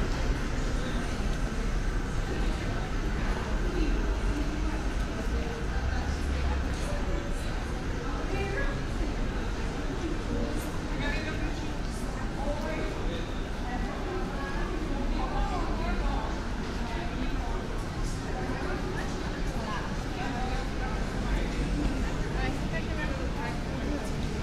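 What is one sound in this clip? A crowd of people chatter in the distance outdoors.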